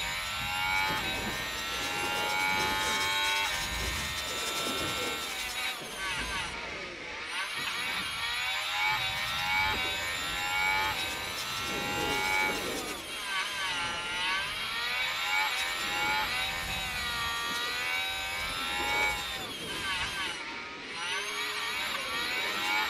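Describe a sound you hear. A racing car engine screams at high revs, rising and falling in pitch as it shifts gears and brakes.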